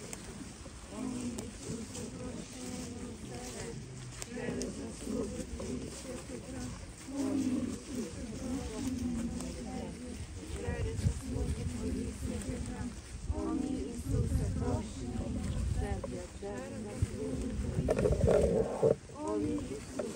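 A crowd of men and women murmur and talk outdoors.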